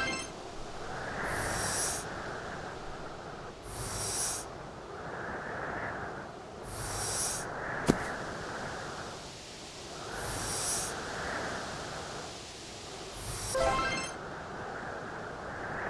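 A swishing sliding sound repeats as something glides across ice.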